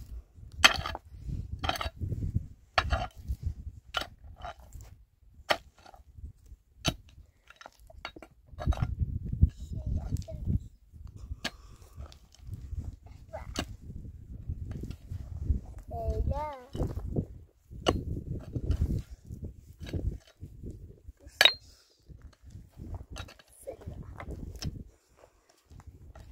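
Loose earth and stones scrape and rattle.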